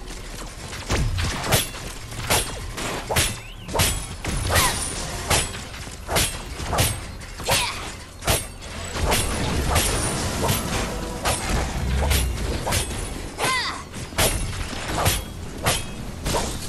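Blades clash and strike repeatedly in a fast fight.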